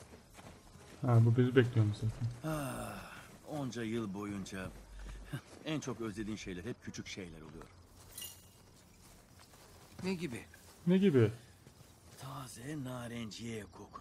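A middle-aged man talks with animation close to a microphone.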